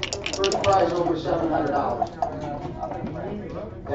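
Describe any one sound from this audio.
Dice rattle and roll onto a board.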